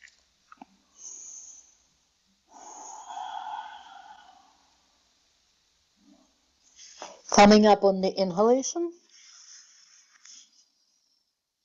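A woman breathes deeply in and out.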